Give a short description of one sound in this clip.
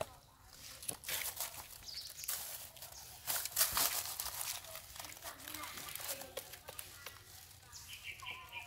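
Dry leaves rustle as a baby monkey scrambles over rocks.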